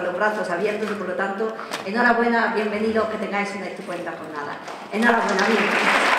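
A woman speaks warmly into a microphone.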